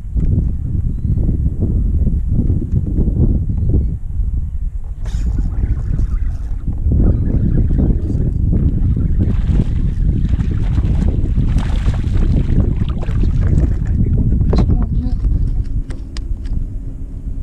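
Wind rumbles across the microphone outdoors on open water.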